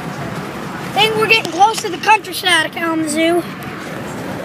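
A young boy talks loudly and excitedly, close by.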